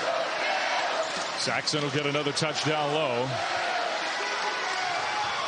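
A large indoor crowd murmurs steadily in an echoing arena.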